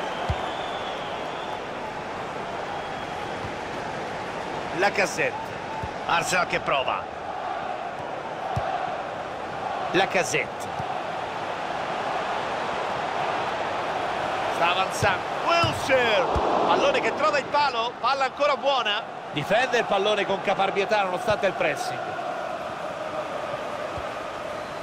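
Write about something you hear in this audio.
A stadium crowd murmurs steadily.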